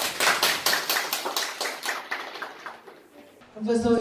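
A group of people clap their hands.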